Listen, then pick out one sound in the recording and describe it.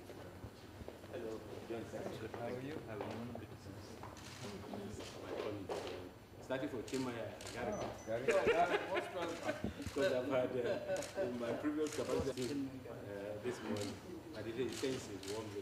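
Two men talk calmly nearby.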